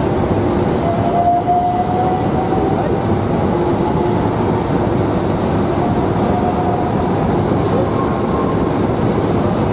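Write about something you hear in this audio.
Traction motors on an electric train whine as it picks up speed.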